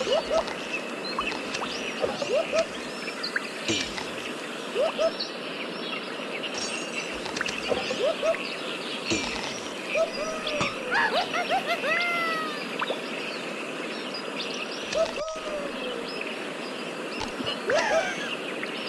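Quick bright game chimes ring again and again.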